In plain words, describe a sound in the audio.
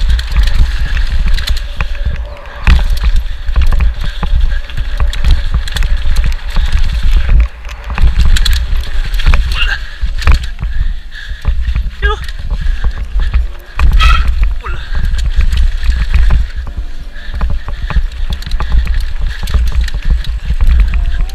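Wind rushes loudly past a fast-moving bicycle.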